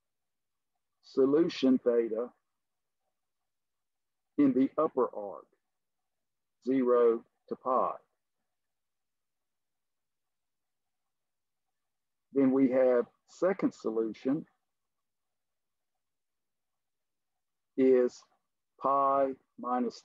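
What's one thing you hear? An elderly man speaks calmly through a microphone, in short phrases.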